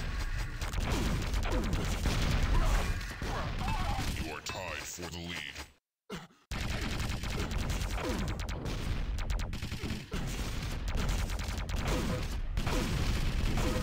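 Guns fire in rapid bursts in a video game.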